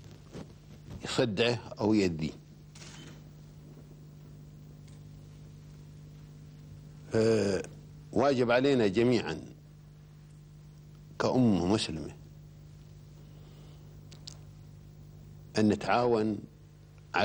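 An elderly man speaks slowly into a microphone, in short phrases with long pauses.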